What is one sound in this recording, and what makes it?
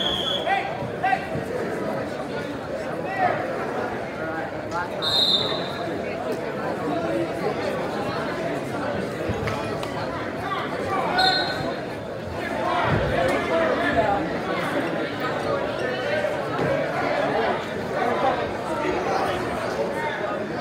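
A crowd of spectators chatters and shouts in a large echoing gym.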